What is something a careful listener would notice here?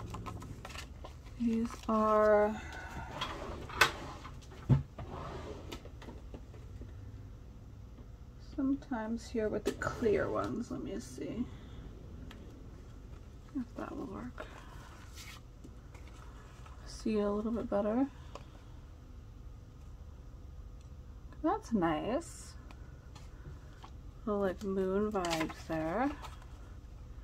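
Thin plastic sheets rustle and crinkle close by.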